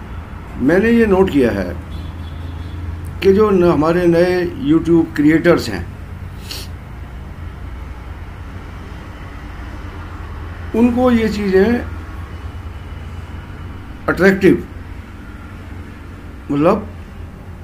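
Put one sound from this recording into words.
An elderly man speaks calmly and slowly, close by, in short phrases with pauses.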